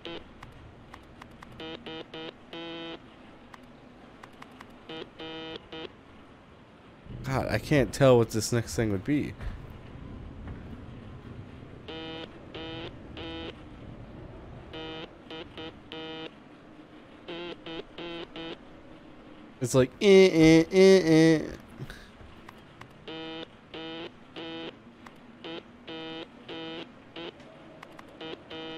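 Short electronic beeps tap out a code in quick bursts.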